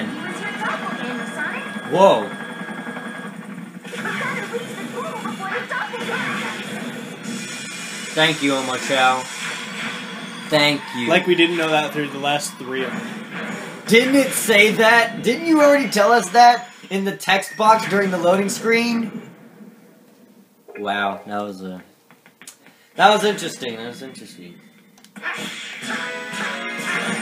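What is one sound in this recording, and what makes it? Fast electronic game music plays through a television speaker.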